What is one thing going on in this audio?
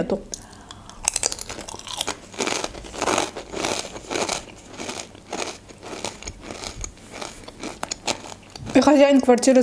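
A young woman crunches crisps close to a microphone.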